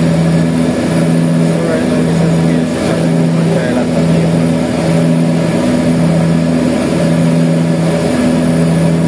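A propeller plane's engine drones loudly and steadily with a pulsing throb.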